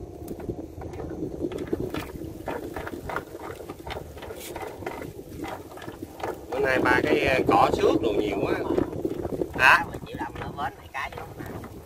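A wet fishing net rustles and drips as it is hauled in by hand.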